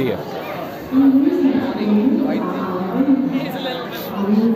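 A child talks close by.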